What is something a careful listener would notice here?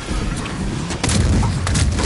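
A heavy thunderous impact booms.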